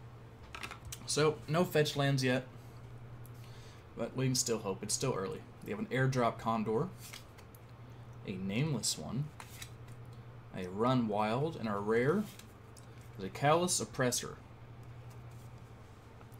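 Playing cards slide and flick softly against each other.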